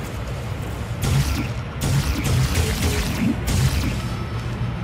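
An energy device crackles and whooshes in short bursts.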